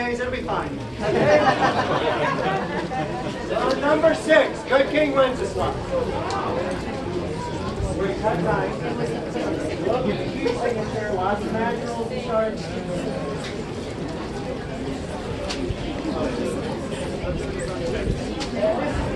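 A brass band plays a lively tune.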